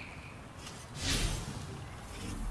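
A soft whoosh sounds as a game menu opens.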